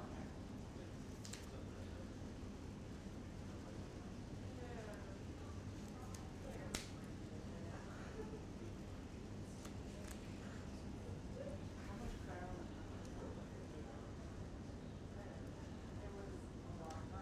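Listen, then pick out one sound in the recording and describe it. Playing cards click and slide on a table.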